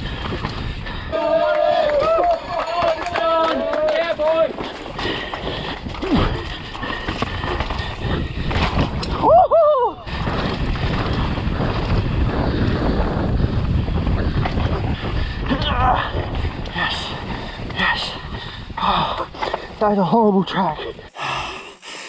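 Bicycle tyres rumble and rattle over a rocky dirt trail.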